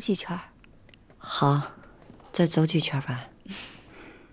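A woman speaks calmly.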